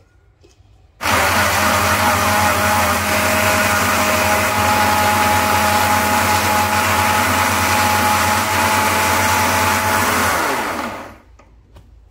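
An electric mixer grinder whirs loudly and steadily, then winds down.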